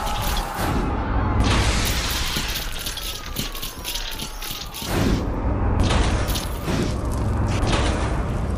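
A large robot's metal legs clank and whir as it climbs.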